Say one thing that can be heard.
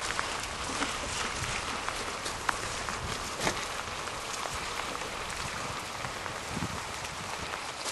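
A cart's wheels rattle over a wet road.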